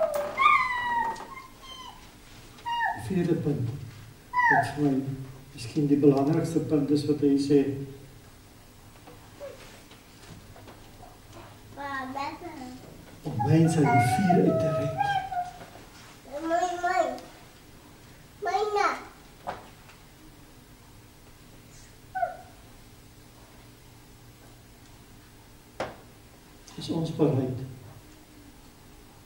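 An elderly man speaks with feeling through a microphone, pausing often, in an echoing hall.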